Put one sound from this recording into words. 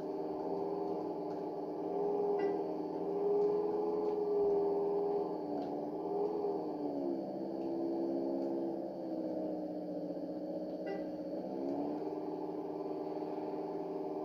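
A propeller plane's engine drones steadily, rising and falling in pitch.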